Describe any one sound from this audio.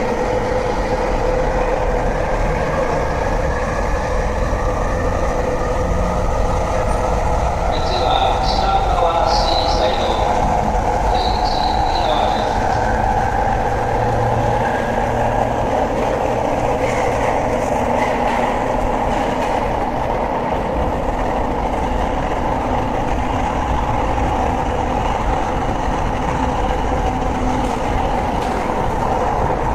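An electric train idles with a steady hum.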